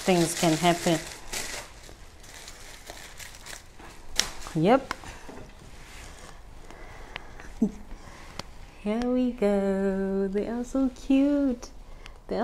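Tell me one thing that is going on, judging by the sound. A young woman talks animatedly and close by, with pauses.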